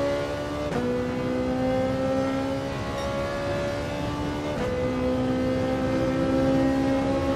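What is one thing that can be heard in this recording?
A racing car engine roars steadily, its pitch climbing slowly and dropping sharply with each gear change.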